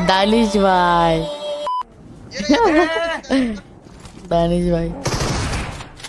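A teenage boy talks excitedly into a close microphone.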